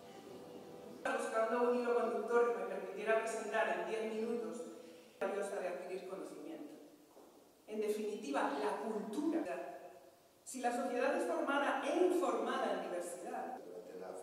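A woman speaks calmly into a microphone, heard through loudspeakers in a large hall.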